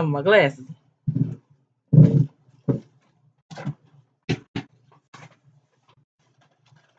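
Plastic packages rustle and knock as they are handled.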